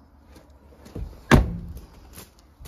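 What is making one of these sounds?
A car door slams shut.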